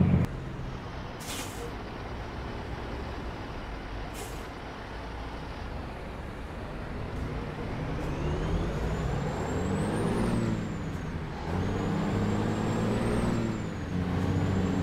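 A truck engine rumbles and revs up and down as it shifts gears.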